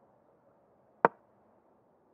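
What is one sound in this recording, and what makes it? A chess piece clicks sharply as it is moved.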